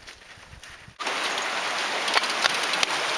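Water splashes as a bike rolls through a shallow stream.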